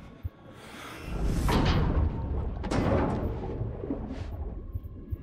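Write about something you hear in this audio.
Water rushes and churns loudly.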